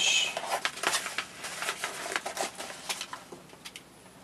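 A padded paper envelope crinkles and rustles in hands.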